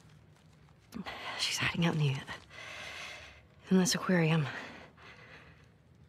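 A young woman speaks quietly and tensely.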